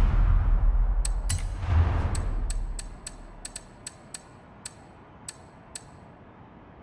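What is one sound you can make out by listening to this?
Short electronic menu clicks tick in quick succession.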